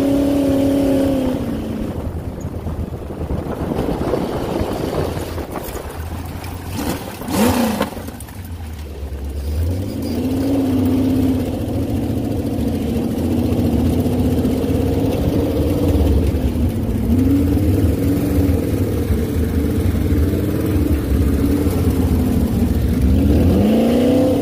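A dune buggy engine drones close by, rising and falling in pitch.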